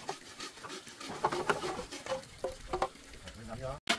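Bamboo stalks knock and clatter as they are set down.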